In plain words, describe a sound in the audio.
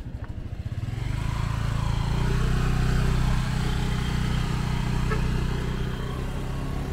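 A motorbike engine rumbles nearby.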